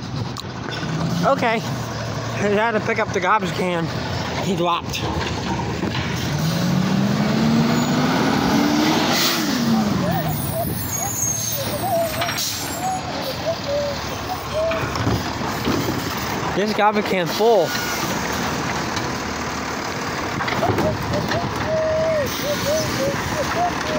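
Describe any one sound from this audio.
A garbage truck engine rumbles and hums nearby.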